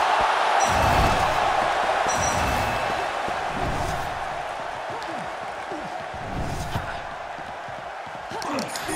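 A crowd roars steadily in a large arena.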